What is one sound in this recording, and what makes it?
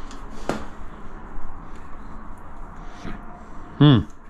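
A caulking gun clicks as its trigger is squeezed.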